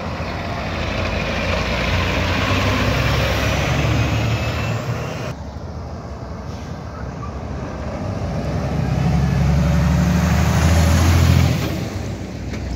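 Large truck tyres roar on the road as they roll past.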